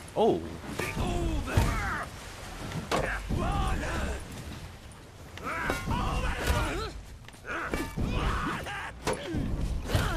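Metal weapons clash and clang.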